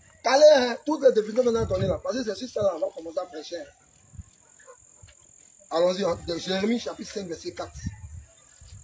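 A man speaks loudly with animation close by.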